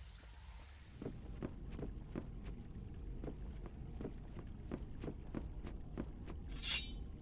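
Footsteps run quickly across wooden boards.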